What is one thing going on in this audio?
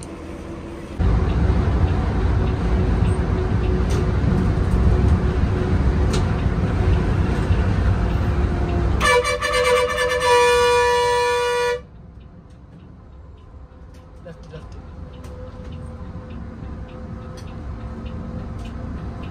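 An engine rumbles loudly while driving along a road, then quietens.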